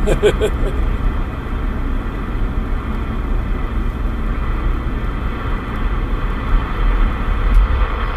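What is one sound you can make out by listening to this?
A CB radio hisses with static.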